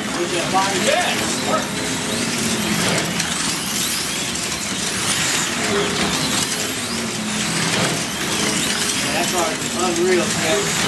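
Small electric slot cars whine loudly as they race around a track.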